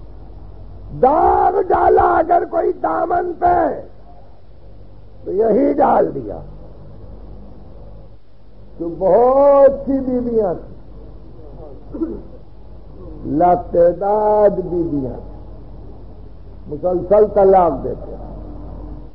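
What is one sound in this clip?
An elderly man recites in long, drawn-out melodic phrases with pauses between them.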